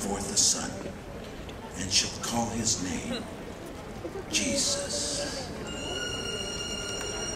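An elderly man speaks slowly through a microphone in a large echoing hall.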